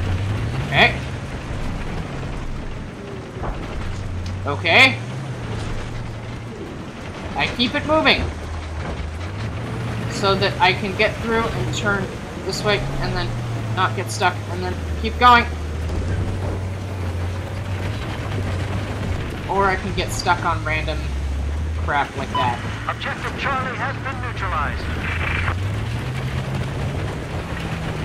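A heavy tank engine rumbles, its pitch rising and falling as it drives.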